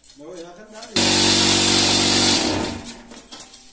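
A block-making machine vibrates with a loud, steady buzz.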